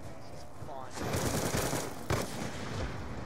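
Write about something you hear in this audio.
A loud blast bursts and rumbles.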